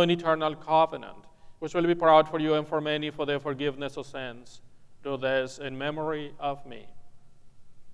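A man chants through a microphone.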